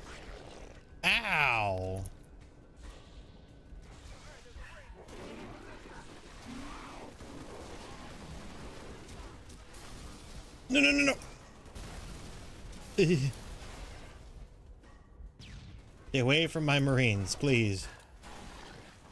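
An energy gun fires in sharp zaps.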